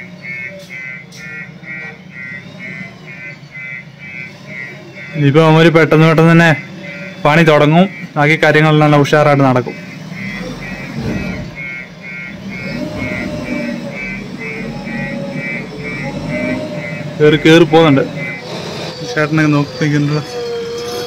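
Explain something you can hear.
A backhoe engine rumbles nearby.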